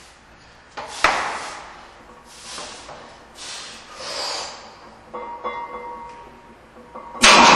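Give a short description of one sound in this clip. A man grunts and breathes hard with strain.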